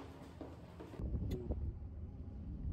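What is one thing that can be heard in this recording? A car engine hums low inside a car.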